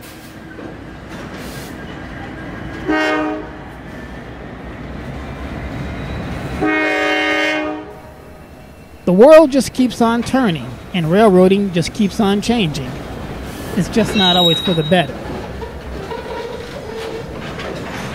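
A freight train rumbles past on the tracks.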